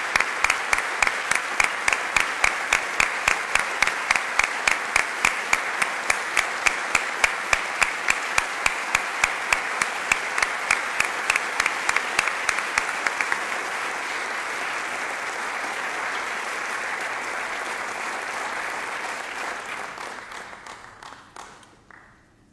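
An audience applauds with steady rhythmic clapping that fades out.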